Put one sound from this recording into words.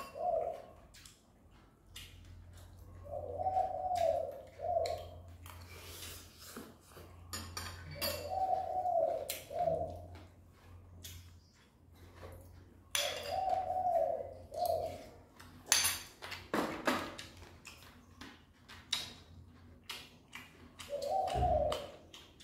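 Spoons clink and scrape against bowls.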